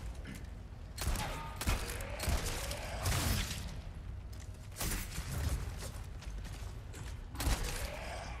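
Gunshots ring out loudly with a short echo.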